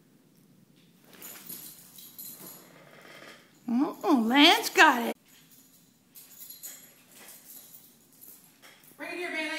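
Dog claws patter and skitter on a hard floor.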